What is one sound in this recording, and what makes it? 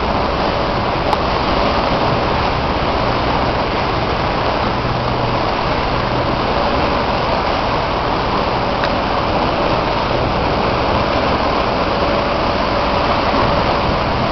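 Small waves lap gently against a boat.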